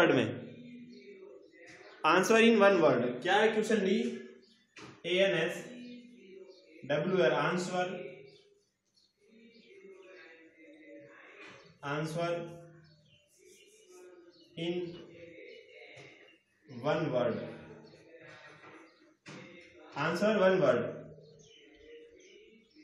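A young man speaks calmly and clearly.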